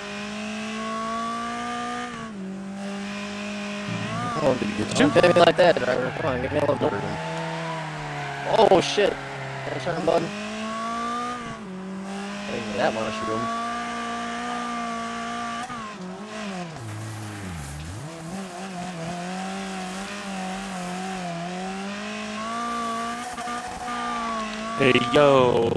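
A racing car engine drones and revs, shifting gears.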